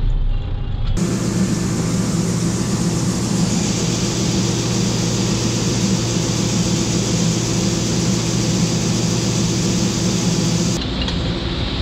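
A combine harvester engine roars steadily close by.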